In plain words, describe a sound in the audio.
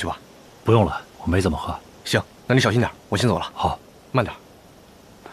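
A young man speaks casually nearby.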